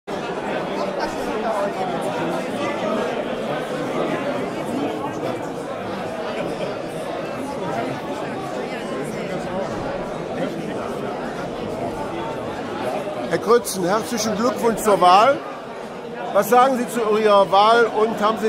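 A crowd of men and women chatter indoors.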